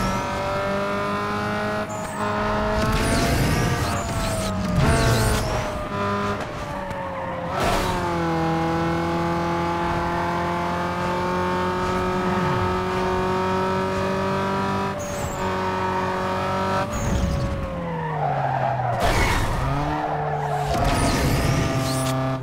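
A car engine roars at high revs and shifts gears as the car races.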